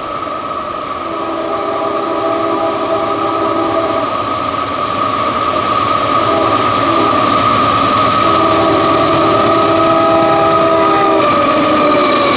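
A locomotive horn blasts in long loud blows as a train approaches.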